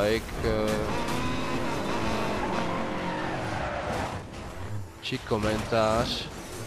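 A racing car engine roars loudly and revs up and down.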